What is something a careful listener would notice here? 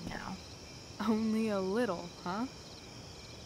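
A second young woman answers with a teasing tone.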